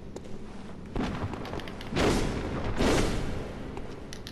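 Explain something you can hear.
A blade swishes through the air.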